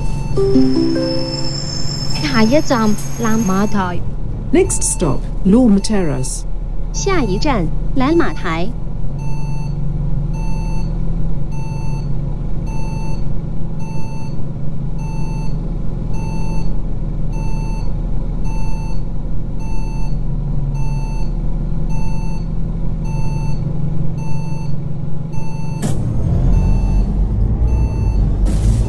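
A bus engine idles with a low, steady rumble, then revs up as the bus pulls away.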